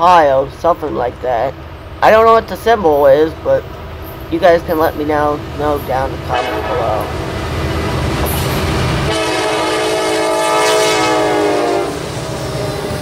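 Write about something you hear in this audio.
A train horn blows in repeated blasts, growing louder as it nears.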